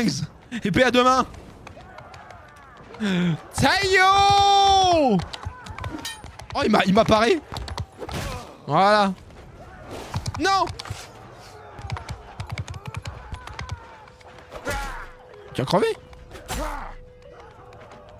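A young man speaks with animation, close into a microphone.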